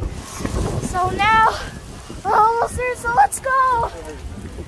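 A young girl calls out excitedly close by.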